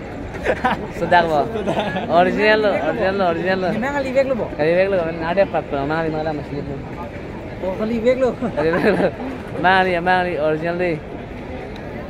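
Young men laugh and chatter nearby.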